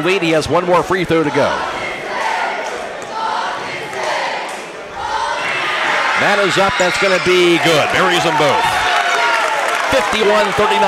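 A large crowd cheers and roars in an echoing gym.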